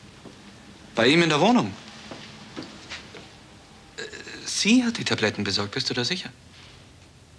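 A middle-aged man speaks calmly and firmly into a telephone nearby.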